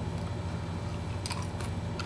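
An elderly man gulps a drink from a bottle.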